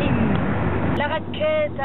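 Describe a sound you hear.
A woman speaks up close.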